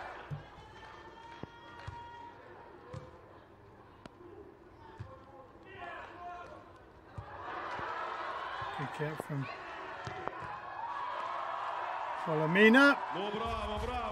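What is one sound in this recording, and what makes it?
A volleyball is struck by hands during a rally.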